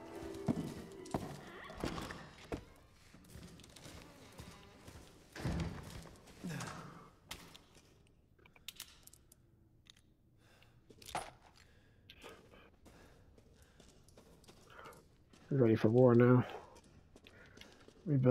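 Footsteps tread slowly on a stone floor in an echoing cellar.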